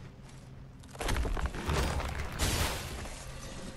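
A flaming blade roars and crackles with fire.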